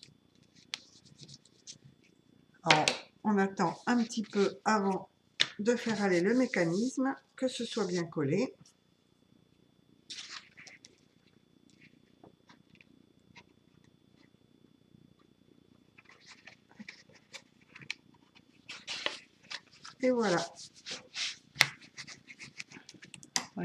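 Stiff paper rustles and crackles as hands fold and handle it.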